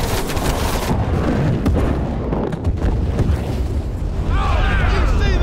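Rifles fire in rapid bursts close by.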